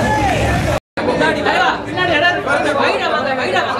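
A crowd of men and women talk over one another close by.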